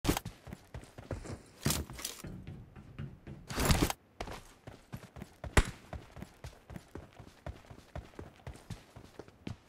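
Footsteps run over the ground.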